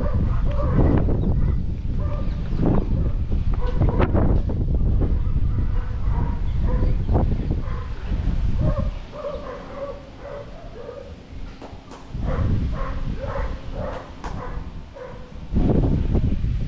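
Wind buffets loudly outdoors in gusts.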